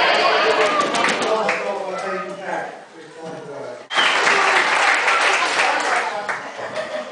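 A crowd of guests claps and cheers.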